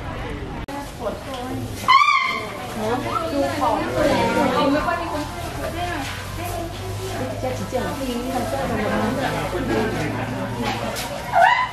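A crowd of visitors chatters nearby.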